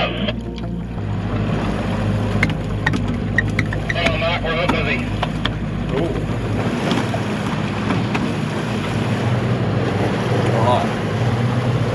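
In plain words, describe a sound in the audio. Water splashes and rushes past a boat's hull.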